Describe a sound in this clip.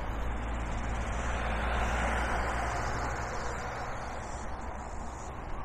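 A car drives past on the road, rising and then fading.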